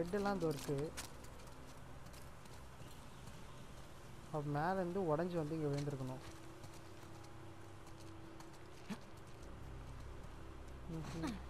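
Footsteps tread on pavement at a walking pace.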